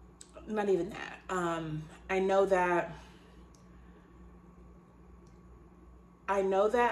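A woman talks expressively and close by, with pauses.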